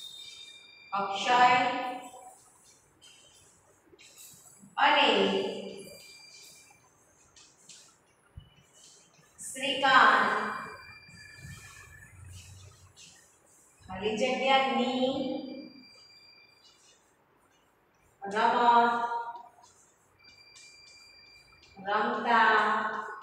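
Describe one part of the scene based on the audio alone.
A woman speaks loudly in short, spaced phrases.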